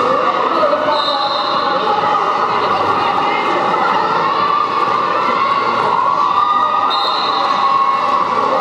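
Referees' whistles blow in short sharp blasts.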